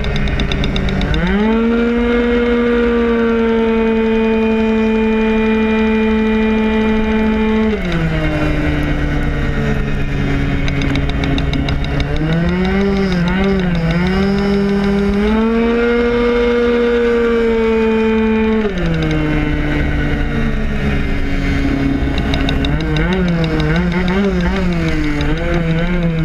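A motorcycle engine roars close by, its pitch rising and falling as it shifts and revs.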